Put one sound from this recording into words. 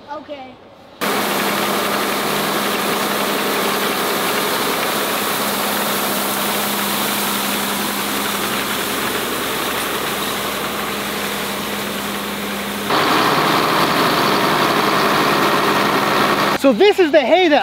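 A hay rake rustles through cut grass.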